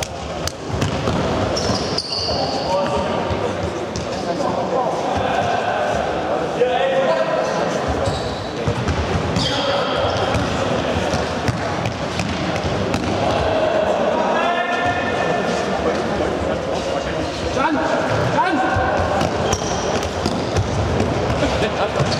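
A ball thumps as it is kicked.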